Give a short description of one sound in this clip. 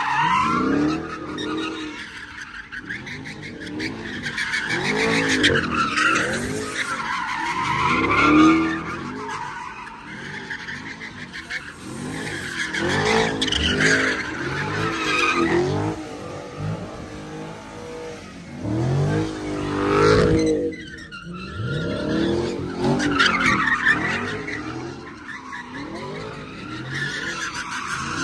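Tyres squeal loudly as a car spins in circles.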